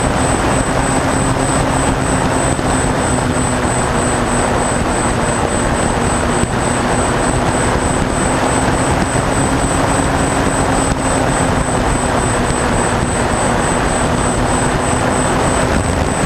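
Wind rushes hard past the plane.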